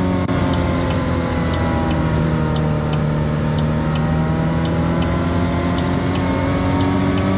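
A car engine hums steadily at speed.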